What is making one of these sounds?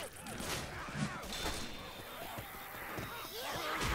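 A blade swings and slashes.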